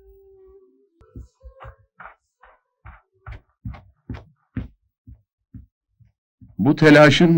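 Footsteps tap on a paved road.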